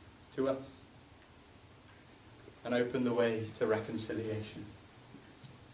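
A young man speaks calmly in a small echoing room.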